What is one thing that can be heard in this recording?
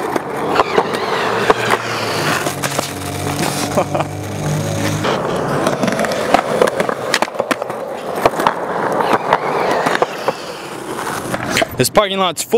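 Skateboard decks clack and snap against concrete.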